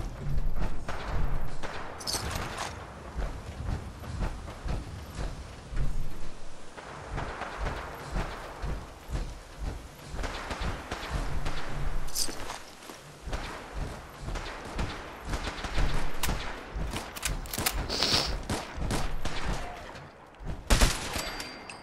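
Heavy armoured footsteps thud steadily on hard ground.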